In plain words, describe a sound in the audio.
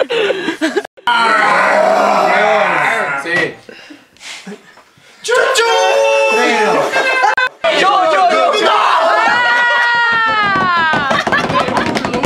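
Several young men sing loudly together, close by.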